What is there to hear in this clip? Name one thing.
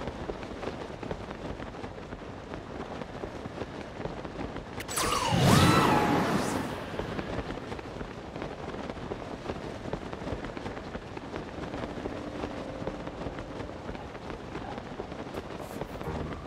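Wind rushes steadily past while gliding through the air.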